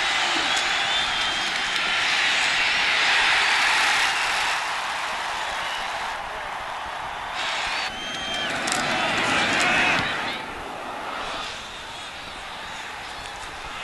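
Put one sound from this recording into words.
A large stadium crowd cheers and roars loudly, swelling and fading.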